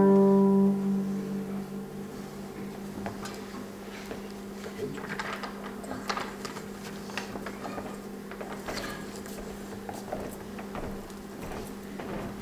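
A single guitar string hums steadily.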